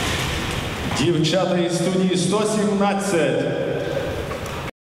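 A brass band plays in a large echoing hall.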